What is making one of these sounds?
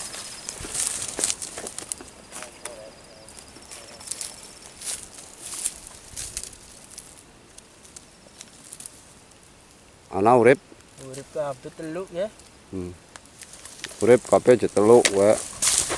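Dry stalks rustle and crackle close by.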